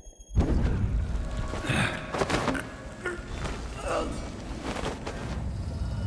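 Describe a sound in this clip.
A man groans as he is choked.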